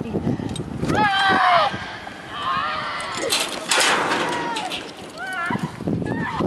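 A young woman screams loudly as she falls.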